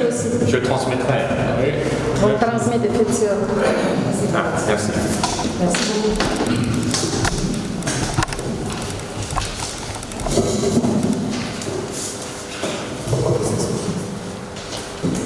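A man speaks nearby in a calm voice.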